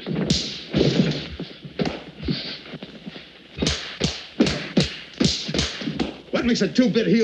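Men scuffle with sharp thumps and blows.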